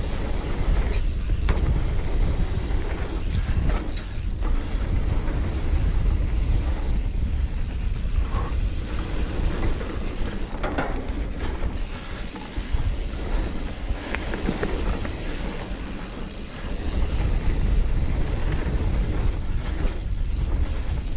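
A bike's frame and chain rattle and clatter over bumps.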